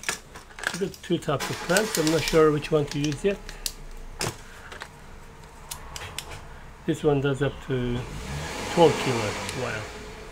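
Plastic spring clamps click and clack as they are set in place.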